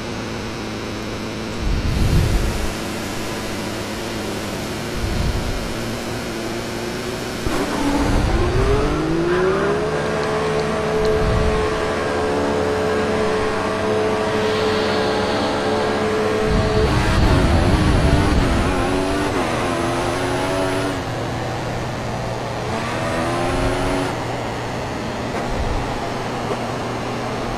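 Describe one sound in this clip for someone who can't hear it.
A racing car engine idles, then revs up and roars, with pitch climbing and dropping at each gear change.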